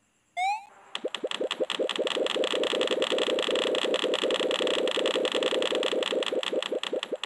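Bouncy electronic music plays steadily.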